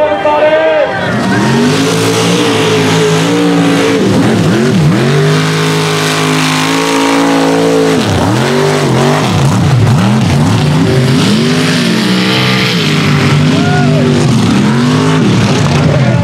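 A truck engine roars and revs hard.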